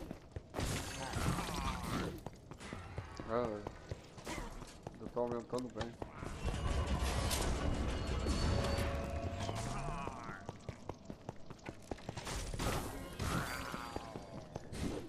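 Blows and blasts strike in a fast fight.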